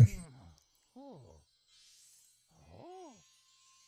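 A small creature gives short high chirps.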